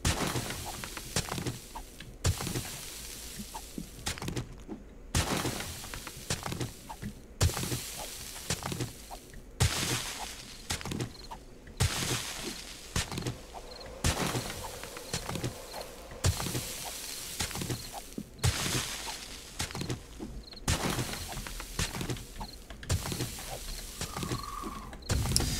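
A pickaxe strikes rock again and again.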